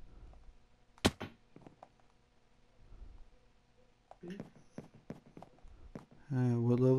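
Soft blocky thuds and crunches of digging sound in quick succession.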